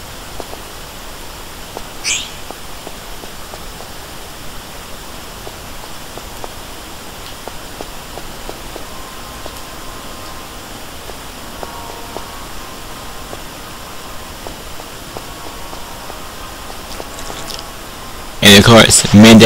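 Footsteps run on a stone floor.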